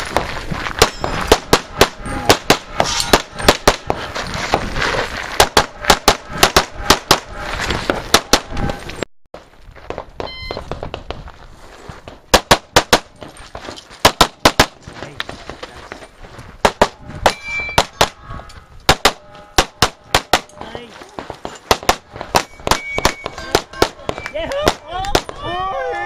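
Pistol shots crack in rapid bursts outdoors, echoing off the hills.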